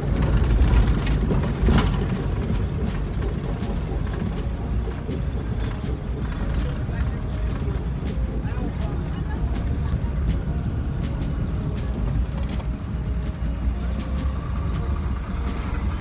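A vehicle engine rumbles steadily while driving.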